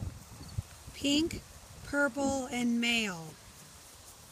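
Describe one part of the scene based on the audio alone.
A man calls out in a high, playful voice nearby.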